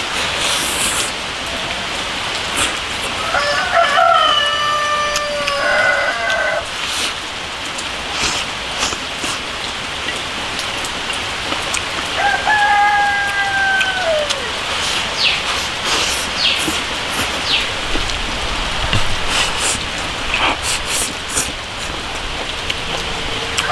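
A man slurps noodles loudly up close.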